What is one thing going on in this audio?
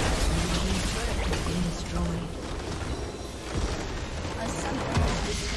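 Game spells crackle and blast in quick bursts.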